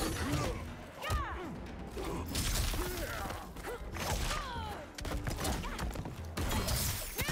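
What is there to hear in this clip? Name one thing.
Punches and kicks land with heavy thuds and whooshes.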